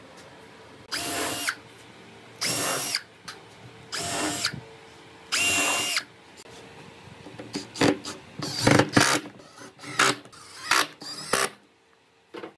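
A cordless drill drives screws into wood in short bursts.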